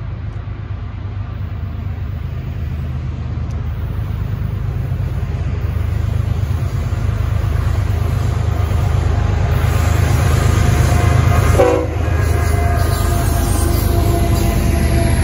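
A diesel locomotive engine rumbles deeply, growing louder as it approaches.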